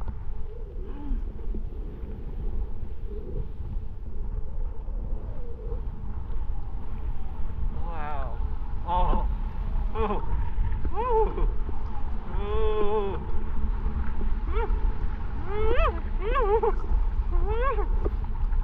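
A snowboard scrapes and hisses over snow.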